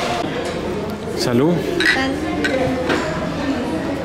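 Two glasses clink together in a toast.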